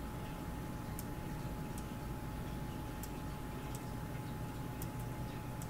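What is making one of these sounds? Short, soft game clicks sound as letters are picked.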